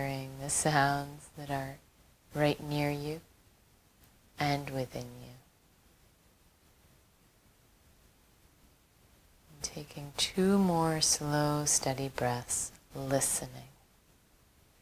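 A woman speaks calmly and softly into a close microphone, with pauses.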